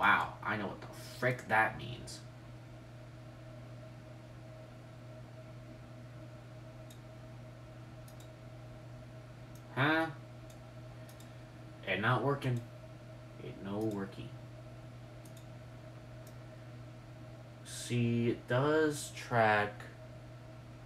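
A young woman speaks calmly nearby, in short bursts.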